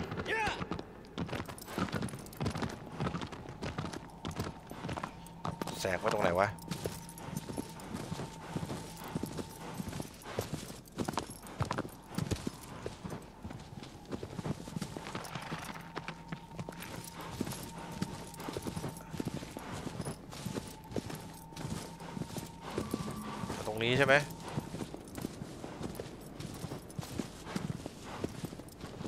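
A horse's hooves gallop over grass.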